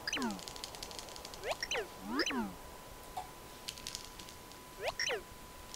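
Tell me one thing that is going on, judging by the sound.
Video game sound effects whoosh in quick rising and falling sweeps.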